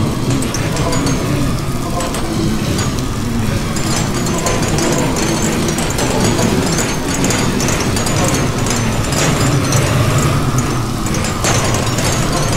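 Stone blocks crunch and crumble as a pickaxe digs in a video game.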